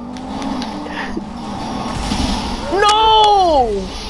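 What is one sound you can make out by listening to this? A car crashes with a loud bang.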